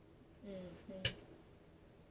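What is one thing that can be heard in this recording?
A card taps down onto a table.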